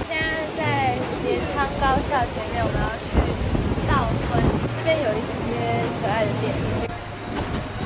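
A young woman talks calmly close by.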